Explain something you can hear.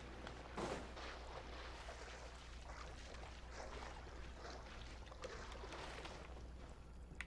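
Water splashes as a swimmer paddles through it.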